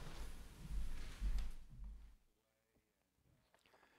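Footsteps walk across a floor.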